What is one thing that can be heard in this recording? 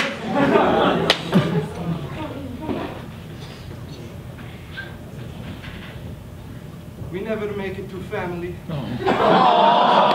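A man speaks to an audience through a microphone in a large room.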